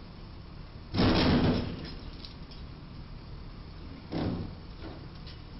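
A box truck slams into a low bridge with a loud crash and scrape.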